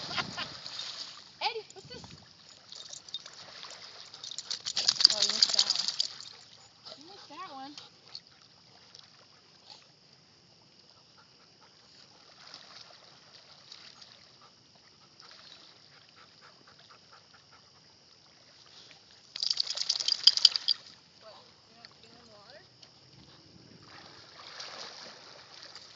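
Dogs splash as they paddle through water.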